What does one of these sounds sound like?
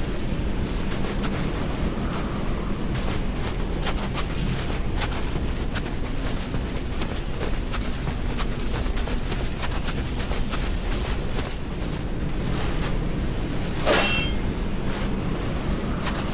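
Wind howls steadily in a blizzard.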